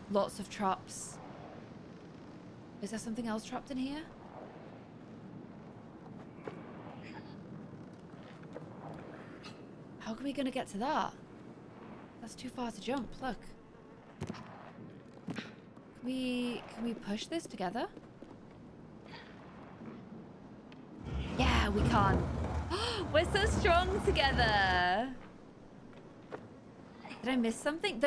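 A young woman talks into a close microphone with animation.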